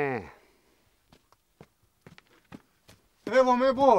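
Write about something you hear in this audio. Footsteps crunch slowly on stony ground.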